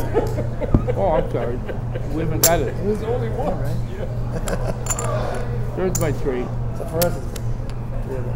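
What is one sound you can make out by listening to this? A man talks casually nearby.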